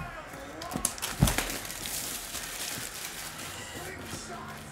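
Plastic wrap crinkles and tears.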